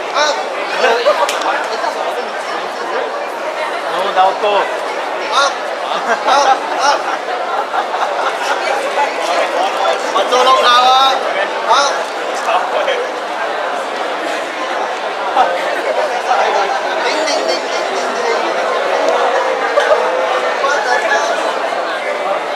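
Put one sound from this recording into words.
A crowd of people chatters all around in a large echoing hall.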